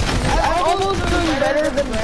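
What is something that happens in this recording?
Gunfire cracks and an explosion bursts.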